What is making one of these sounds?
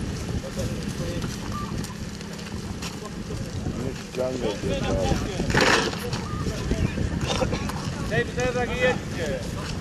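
Men talk to each other outdoors.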